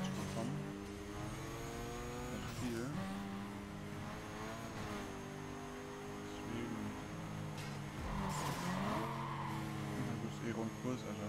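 A sports car engine roars at full throttle, dropping in pitch at each gear shift.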